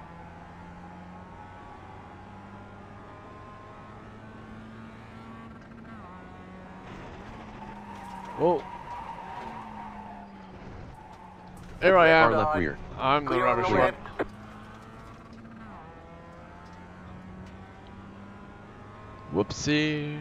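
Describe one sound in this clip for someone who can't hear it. A race car engine drones steadily, rising and falling as it shifts gears.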